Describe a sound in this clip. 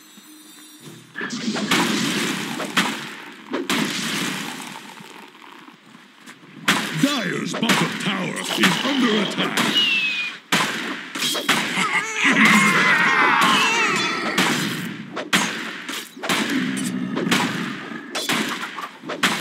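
Spells crackle and blows clash in a fast fantasy battle.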